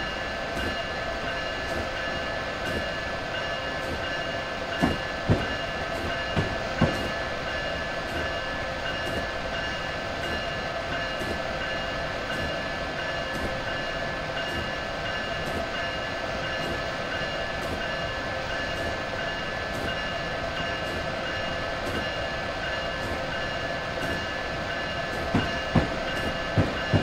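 A train hums and rumbles steadily as it rolls along the track.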